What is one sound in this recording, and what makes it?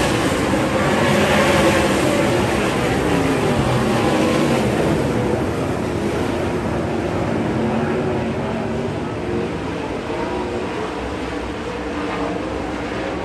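Race car engines roar and whine loudly as they speed past.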